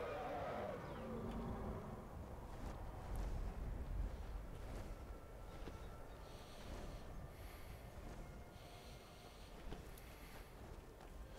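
Wind blows steadily through the whole stretch.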